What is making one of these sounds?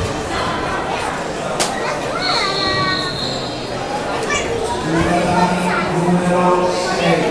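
Adults chatter quietly in the background of a large echoing hall.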